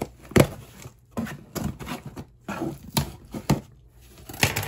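A cardboard flap tears open with a rough ripping sound.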